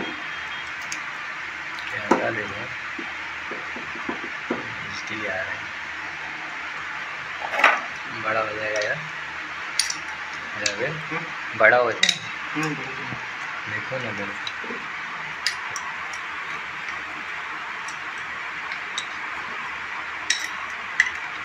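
Metal tools click and clink against each other.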